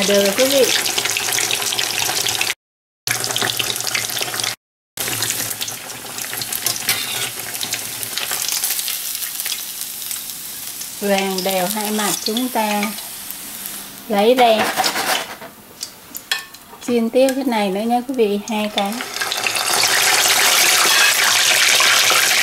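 Oil sizzles and bubbles loudly in a frying pan.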